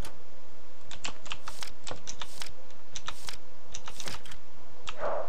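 Short electronic blips sound as menu options are chosen.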